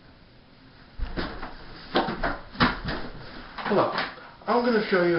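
Thumps and rustling sound close by.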